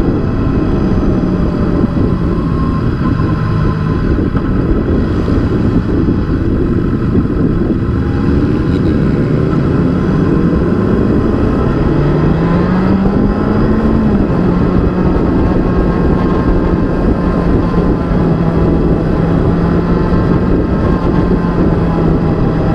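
A motorcycle engine hums steadily up close, rising in pitch as it speeds up.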